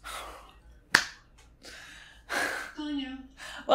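A young woman gasps in surprise close by.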